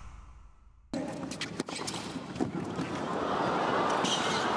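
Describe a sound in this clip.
Tennis rackets strike a ball back and forth.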